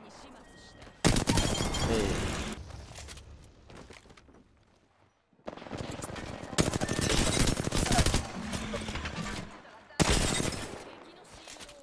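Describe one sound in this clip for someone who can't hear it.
Automatic gunfire rattles in loud, rapid bursts.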